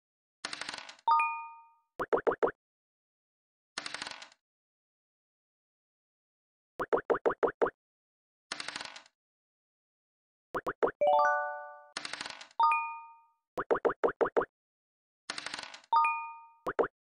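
A bright chime rings after a die roll.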